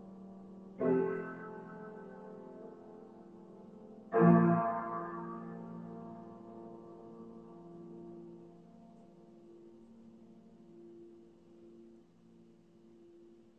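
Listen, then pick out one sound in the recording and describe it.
Piano chords ring out and slowly fade.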